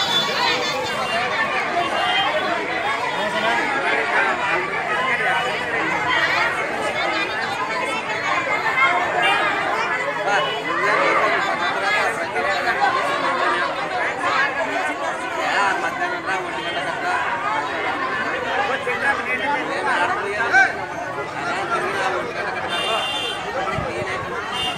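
A crowd of women chatters and murmurs nearby.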